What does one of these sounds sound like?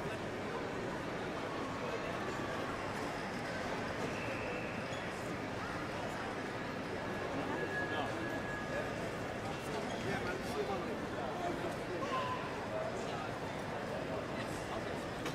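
A crowd murmurs and echoes in a large hall.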